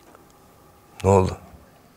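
A young man answers in a low, serious voice, close by.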